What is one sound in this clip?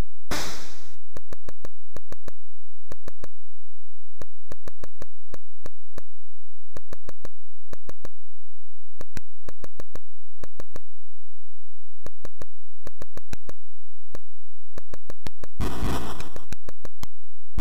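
Short electronic clicks tick in a steady rhythm as a game figure moves.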